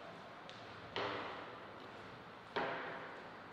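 A ping-pong ball taps sharply on a table in an echoing hall.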